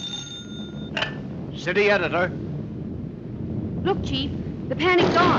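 A young woman speaks urgently into a telephone.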